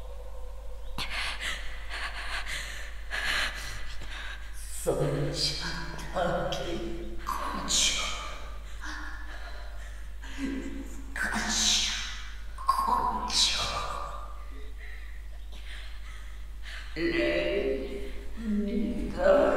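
A woman speaks slowly and coldly, close by.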